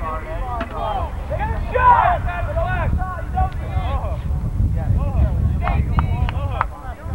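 Many young men chatter and call out nearby outdoors.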